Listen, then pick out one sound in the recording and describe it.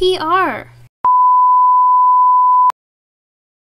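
A steady high test tone beeps.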